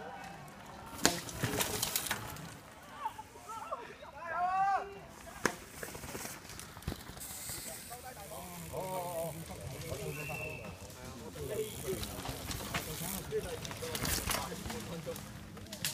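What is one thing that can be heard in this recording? A mountain bike rattles down a rough dirt trail.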